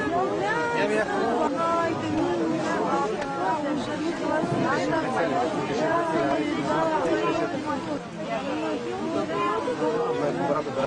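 A crowd of people talks and shouts loudly close by.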